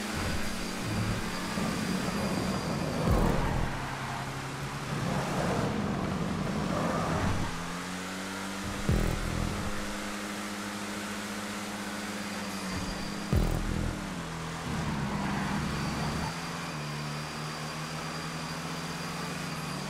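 Car tyres hiss on the track.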